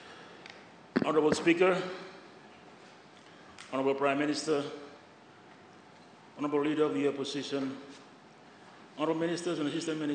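A man speaks through a microphone in a large echoing hall, in short phrases with pauses.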